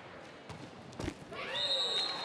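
A volleyball is struck hard with a smack.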